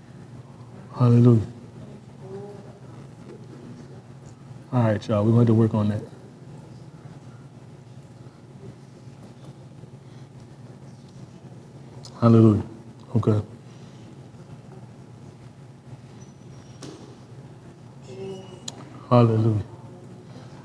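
A man speaks calmly in short bursts, close by, with long pauses between.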